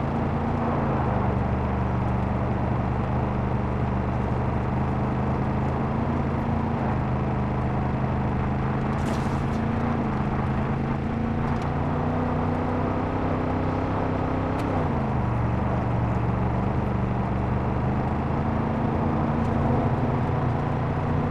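Tyres rumble over a rough road.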